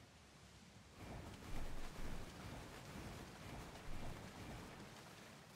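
Water splashes as something plunges into it.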